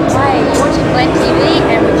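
A young woman talks toward the listener.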